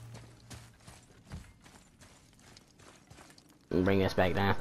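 Heavy footsteps thud on wooden planks.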